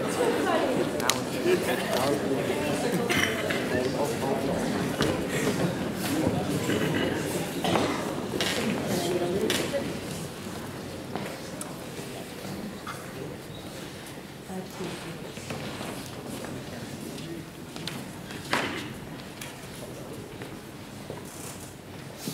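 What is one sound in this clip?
A choir of young men and women sings in a large echoing hall, then softens.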